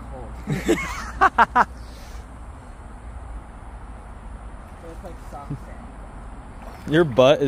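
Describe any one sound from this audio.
A shallow stream trickles gently over stones.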